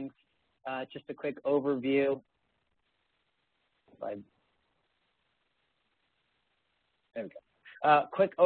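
A young man speaks calmly through an online call, with pauses.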